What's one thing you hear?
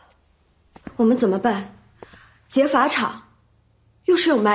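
A young woman speaks anxiously, close by.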